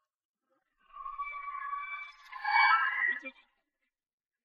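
Flames flare up with a whoosh.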